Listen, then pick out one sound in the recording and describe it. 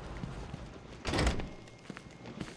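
A heavy metal door opens with a loud clank.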